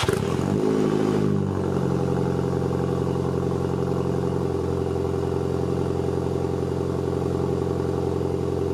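A car engine starts with a quick rev and then idles with a deep, steady exhaust rumble close by.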